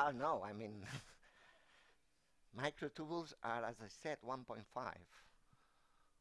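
A man lectures through a microphone, speaking calmly with pauses.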